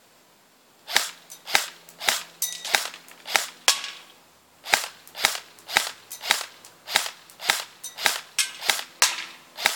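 An airsoft rifle fires rapid shots outdoors.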